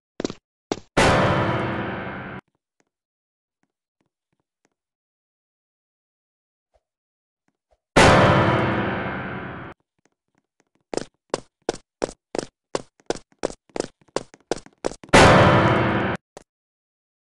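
A sudden, loud jumpscare shriek blasts out.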